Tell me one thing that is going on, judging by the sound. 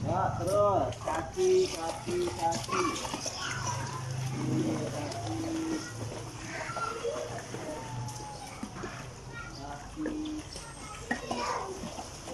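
Water splashes as children kick in a pool.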